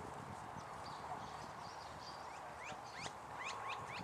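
A putter taps a golf ball with a soft click.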